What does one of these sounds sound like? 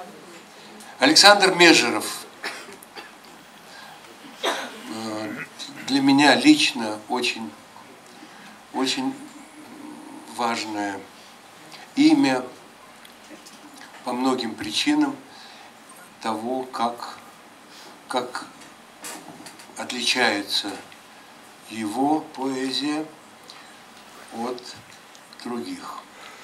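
An older man speaks into a microphone over loudspeakers, in short phrases with pauses.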